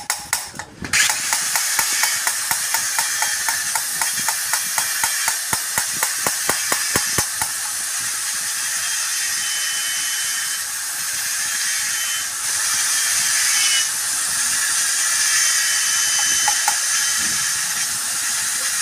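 A handheld air tool whirs and hisses loudly with a fast rattle.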